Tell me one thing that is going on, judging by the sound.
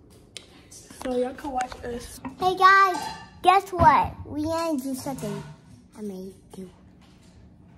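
A young girl talks animatedly close by.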